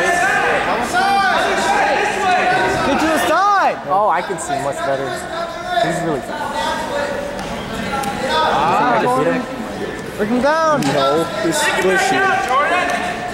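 Shoes squeak on a mat as two wrestlers grapple.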